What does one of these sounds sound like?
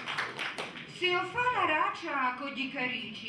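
A woman reads aloud through a microphone.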